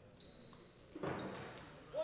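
A small crowd cheers and claps.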